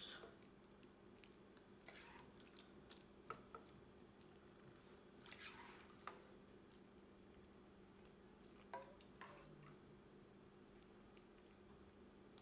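Syrup splashes softly from a ladle onto baked cookies.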